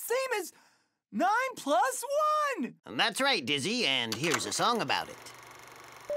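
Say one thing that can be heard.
A high-pitched cartoon voice talks with animation, close up.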